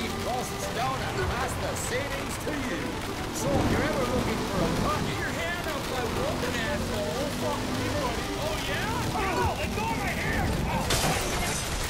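A car engine roars as the car speeds along a street.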